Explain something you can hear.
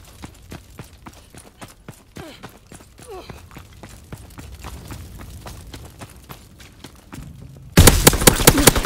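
Footsteps run quickly over rubble.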